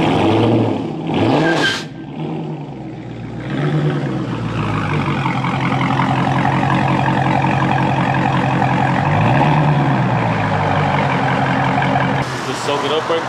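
A car engine idles with a deep, throaty rumble.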